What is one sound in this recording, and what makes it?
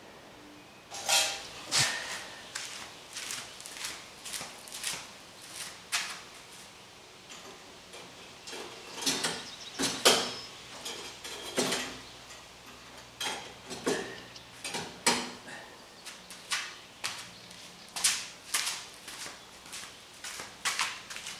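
Footsteps scuff on a concrete floor.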